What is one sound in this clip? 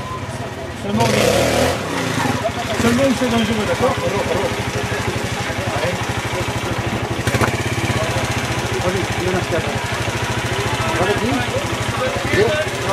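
A trials motorcycle revs in short bursts as it climbs over rocks.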